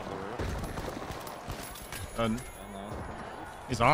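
A rifle fires in short bursts.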